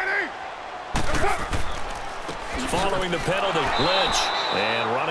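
Football players crash together in a tackle.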